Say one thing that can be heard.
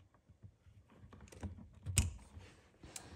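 Pliers click shut on a wire.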